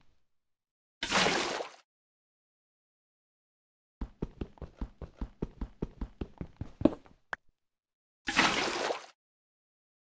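Water splashes onto lava with a short hiss.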